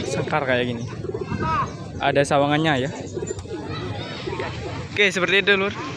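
Pigeons coo in cages close by.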